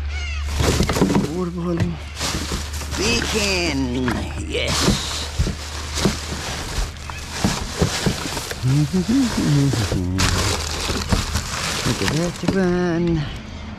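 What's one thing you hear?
Plastic bags and wrappers rustle and crinkle as a hand digs through rubbish.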